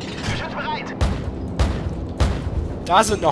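Heavy cannon shots boom and explosions thud in short bursts.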